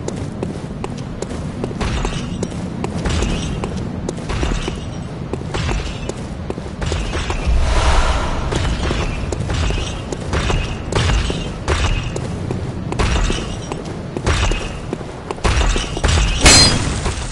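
Footsteps clatter quickly on stone.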